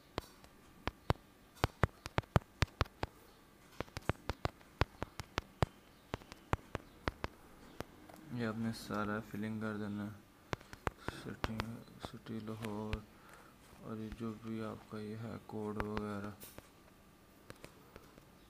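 Keyboard keys click in quick taps.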